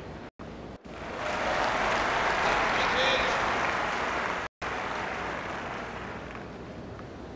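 A crowd applauds and cheers, then fades.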